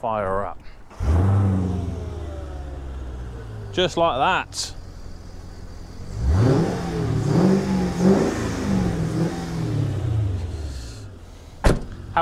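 A car engine starts and revs up and down.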